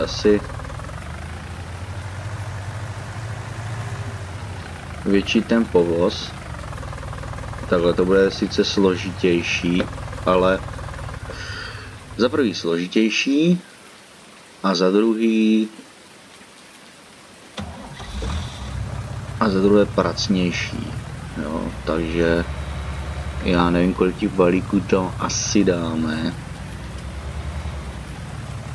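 A tractor engine rumbles steadily at low speed.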